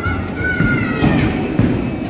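A bowling ball rolls down a wooden lane.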